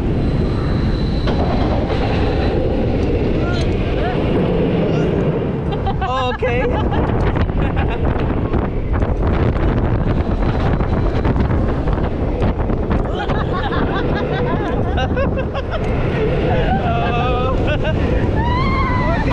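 A roller coaster train rumbles and rattles loudly along its track.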